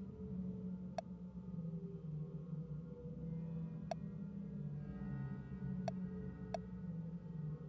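A game menu cursor ticks softly as it moves between choices.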